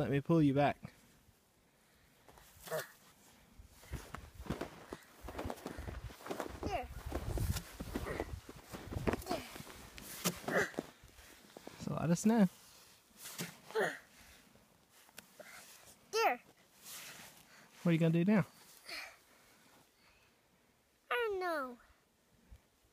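A young child speaks and calls out nearby in short bursts.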